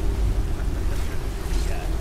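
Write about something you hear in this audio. Water rushes and splashes over rocks.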